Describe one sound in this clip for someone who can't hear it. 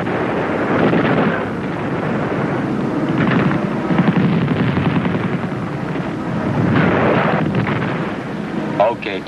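Explosions rumble and boom across a hillside.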